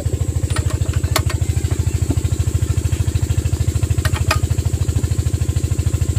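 A metal wrench clicks against bolts.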